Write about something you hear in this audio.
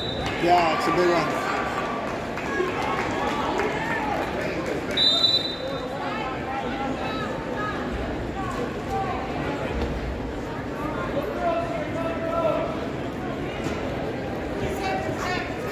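A crowd of spectators talks and shouts throughout a large echoing hall.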